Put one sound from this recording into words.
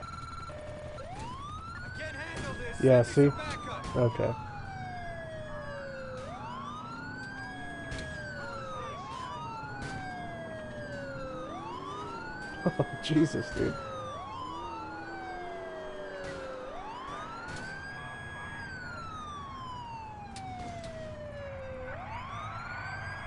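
A police siren wails, rising and falling in a regular cycle.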